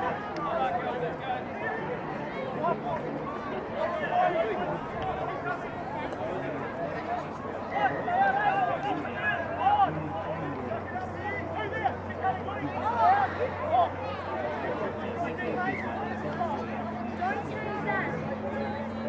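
A crowd of young people chatter and call out outdoors.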